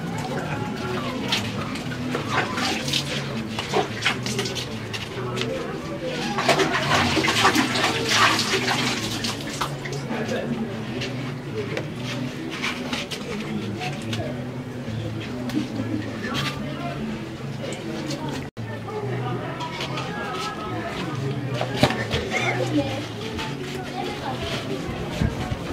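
A young man groans and cries out loudly.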